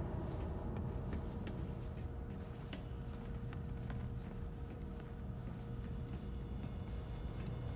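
Footsteps thud on a hard floor at a run.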